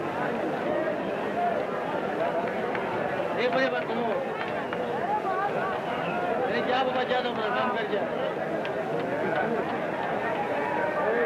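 A crowd of men talk and call out all around, outdoors.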